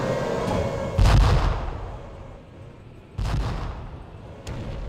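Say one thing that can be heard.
A tank cannon fires with a loud boom that echoes away.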